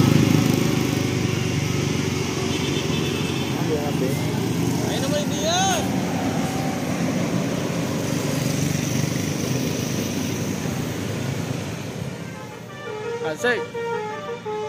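Cars and motorcycles drive past on the road.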